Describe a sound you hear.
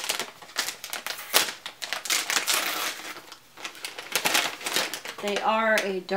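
Paper rustles and crinkles close by as it is handled.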